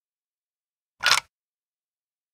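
A wooden gear clicks into place on a well's winch.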